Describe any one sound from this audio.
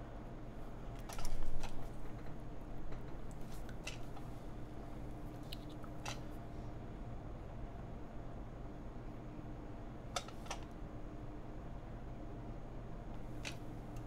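Small plastic parts click and tap on a desk.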